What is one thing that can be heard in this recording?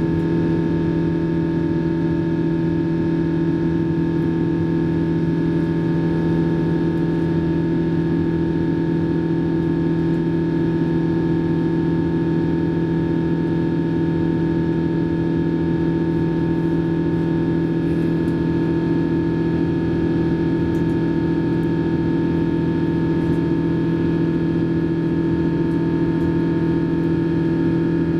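Jet engines drone steadily inside an airliner cabin.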